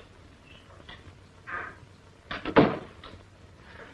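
A door opens and closes.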